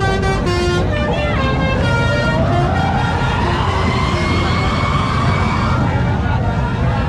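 A bus engine roars and revs up as it speeds away.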